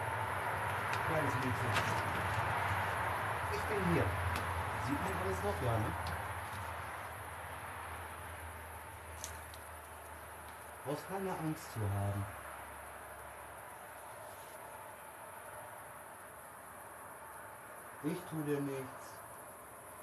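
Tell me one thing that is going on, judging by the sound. A young man speaks in short bursts nearby.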